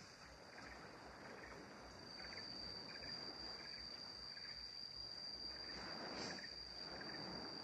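Countless small crabs scuttle and rustle over wet sand.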